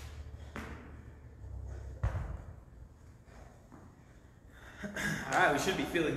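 A dumbbell thuds onto a hard floor.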